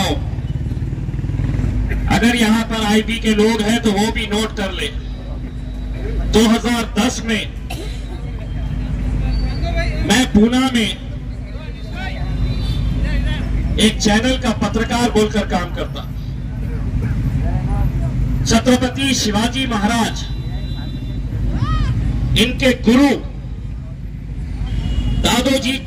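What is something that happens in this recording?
A middle-aged man speaks forcefully into a microphone over a loudspeaker, in bursts with pauses.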